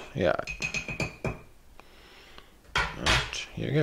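A metal spoon is set down on a table with a light clatter.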